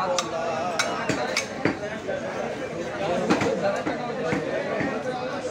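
A knife chops through meat onto a wooden block with sharp thuds.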